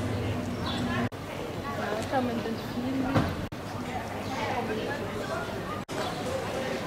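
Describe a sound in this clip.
People chatter in a busy outdoor square.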